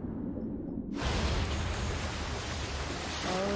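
A soft rushing of wind and water swells up.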